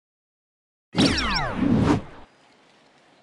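A shimmering whoosh sweeps down at the start of a match.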